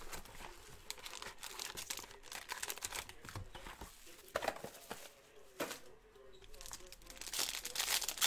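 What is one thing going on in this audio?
Plastic card wrappers crinkle and rustle as they are handled.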